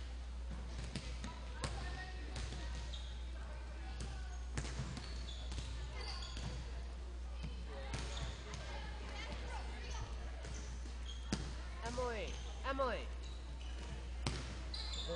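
A volleyball thumps off players' hands and arms in a large echoing gym.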